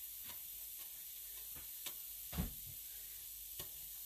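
Water drips and splashes as wet yarn is lifted from a pot.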